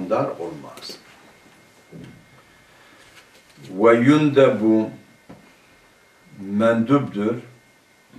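A man reads aloud slowly in a chanting voice, close to a microphone.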